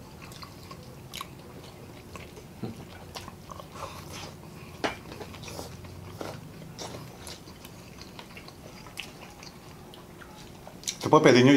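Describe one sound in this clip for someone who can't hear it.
Mouths chew and slurp food close up with small wet clicks.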